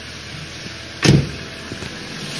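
A car door shuts with a heavy thud.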